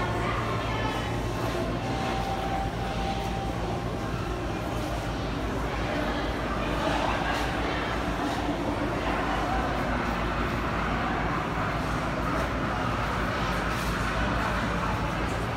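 People talk quietly in a large echoing hall.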